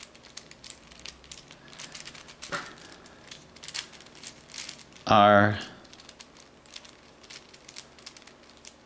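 Plastic puzzle cube pieces click and rattle as they are twisted.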